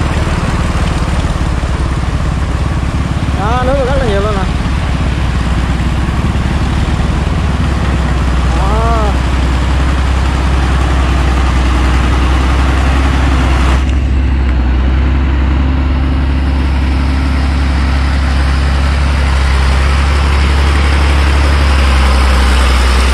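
Tractor tyres churn through wet mud.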